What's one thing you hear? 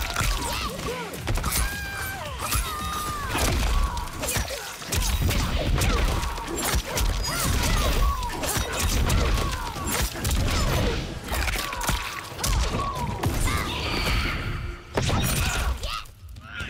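Heavy punches and kicks land with sharp thuds and cracks.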